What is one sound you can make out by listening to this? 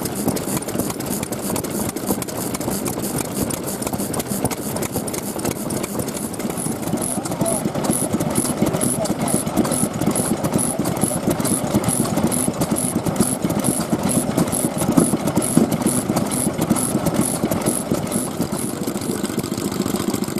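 An old engine thumps and chugs in a steady rhythm.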